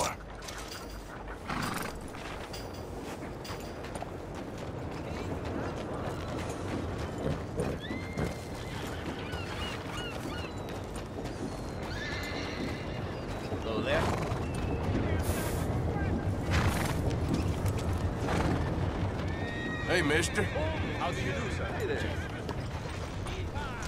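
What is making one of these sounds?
A horse whinnies and snorts.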